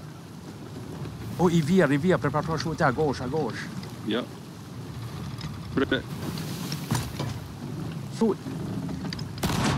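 Waves roll and splash around a wooden ship.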